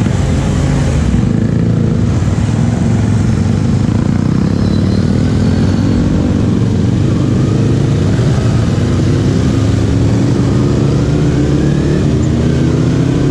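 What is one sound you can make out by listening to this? Motorbikes buzz all around in traffic.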